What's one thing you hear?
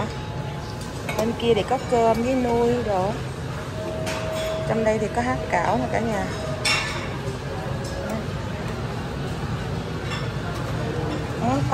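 Metal serving utensils clink against food trays.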